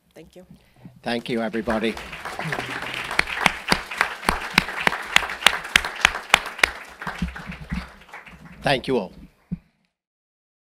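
An audience applauds with many claps.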